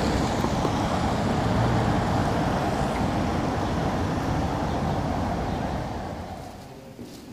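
Traffic rumbles and hisses steadily outdoors.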